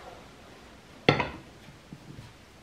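A heavy pot is set down on a table with a thud.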